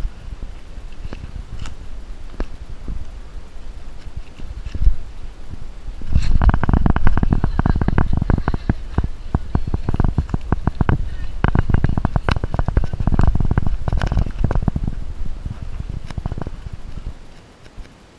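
Dry leaves and twigs crackle and rustle underfoot close by.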